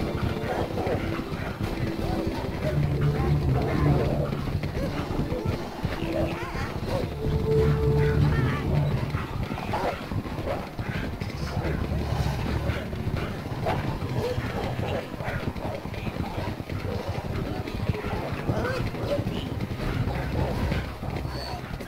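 Many heavy footsteps tramp together over snow.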